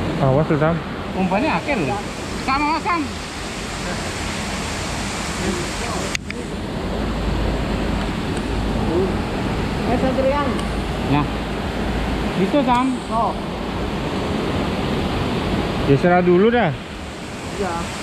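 Men talk to each other nearby, outdoors at night.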